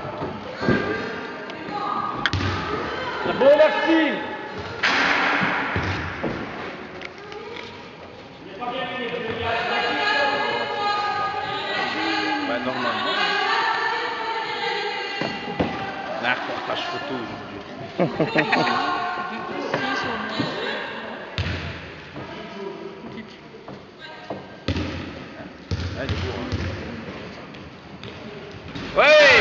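Children talk and call out in a large echoing hall.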